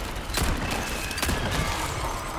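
A pistol fires sharp shots indoors.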